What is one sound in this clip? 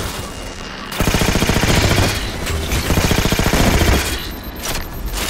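Loud explosions boom and roar.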